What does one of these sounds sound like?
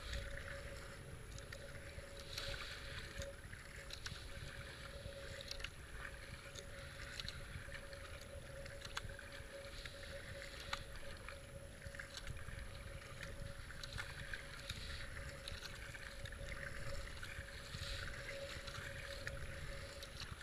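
A paddle splashes and dips into water in a steady rhythm.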